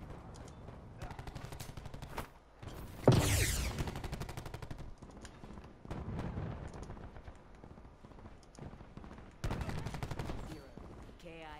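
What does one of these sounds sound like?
A rapid-fire gun fires bursts of shots.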